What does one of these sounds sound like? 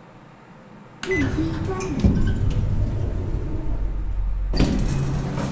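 An elevator motor hums with a low rumble.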